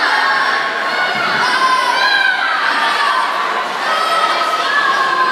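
A crowd cheers and shouts loudly in an echoing hall.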